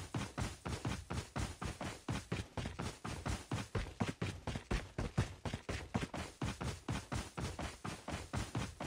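Footsteps thud quickly and steadily on grass.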